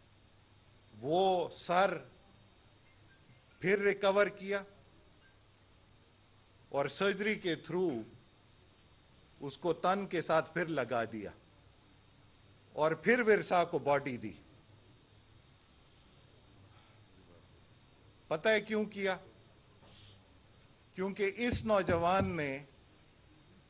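A man speaks calmly into a microphone in short phrases with pauses between them.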